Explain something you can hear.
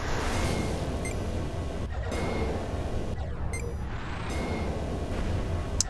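Laser weapons zap and hum in a game.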